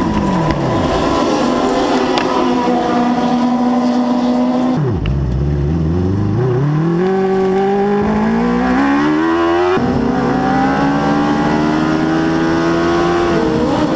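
A race car engine roars loudly close by, revving up and down.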